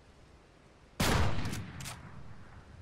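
A sniper rifle fires a loud shot that echoes.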